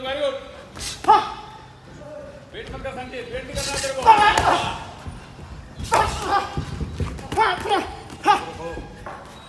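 Boxing gloves thud against each other in quick punches.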